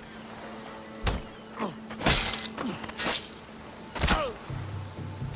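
A blade strikes flesh with sharp, heavy thuds.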